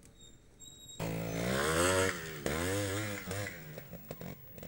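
A motorcycle engine revs hard, rising and falling in pitch.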